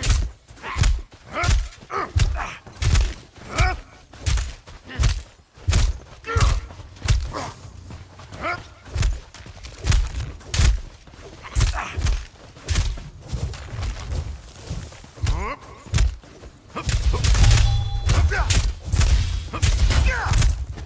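Weapon blows strike again and again in a quick, steady rhythm.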